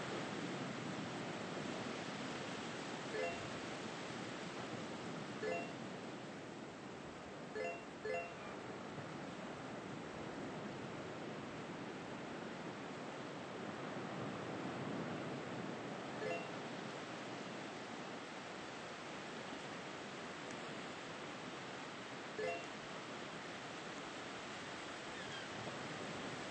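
Waves wash steadily against a shore.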